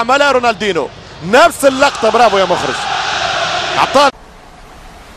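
A large stadium crowd cheers and roars.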